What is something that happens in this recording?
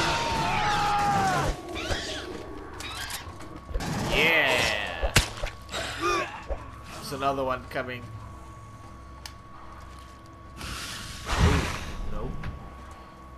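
A creature screeches and hisses loudly.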